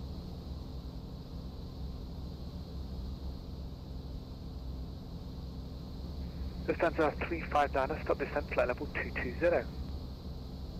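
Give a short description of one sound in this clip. A propeller plane's engine drones steadily in a cabin.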